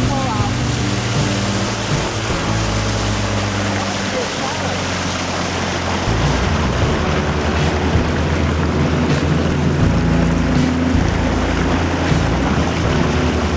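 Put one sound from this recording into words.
Water splashes and rushes past a moving boat.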